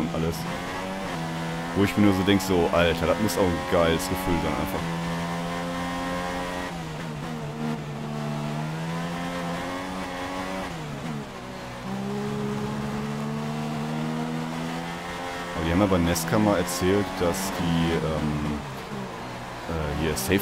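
A racing car engine whines loudly, rising and falling in pitch as the car shifts gears.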